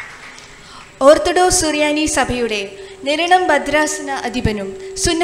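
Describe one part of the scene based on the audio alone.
A choir of young women and men sings together through microphones.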